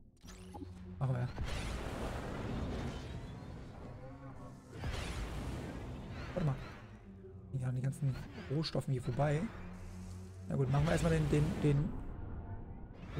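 A spacecraft engine roars and whooshes as it flies.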